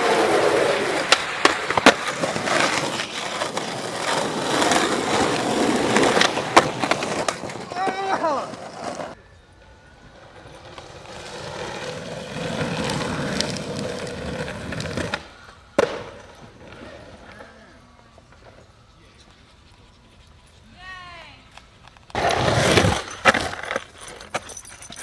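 Skateboard wheels roll and rumble over rough ground.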